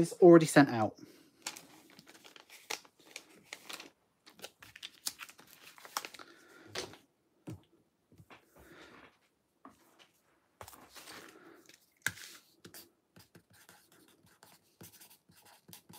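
Card and paper rustle and tap on a table as they are handled.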